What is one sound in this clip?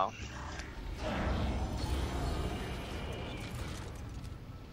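A heavy metal door slides open with a mechanical hiss.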